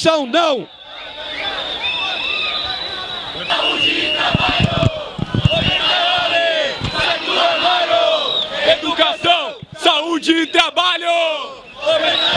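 A crowd of young men and women chants loudly outdoors.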